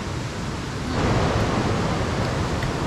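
A river rushes loudly close by.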